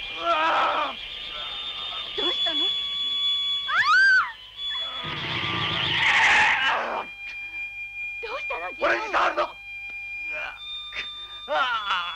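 A young man shouts with strain.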